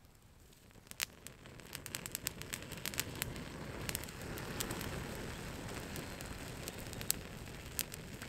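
A campfire crackles and pops as it catches.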